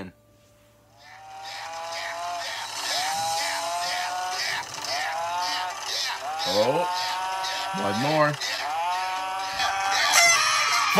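A cartoon character shouts excitedly in a high, strained voice.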